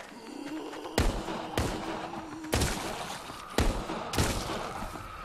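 Revolver shots ring out one after another.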